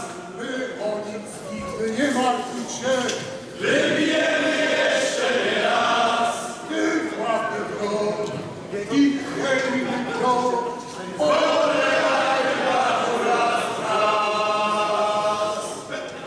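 A male choir sings a sea shanty through loudspeakers.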